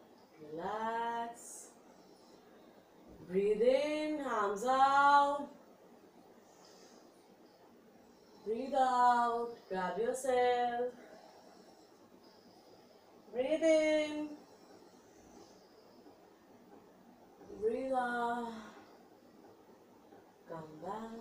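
A young woman speaks in short phrases, calmly instructing, close by.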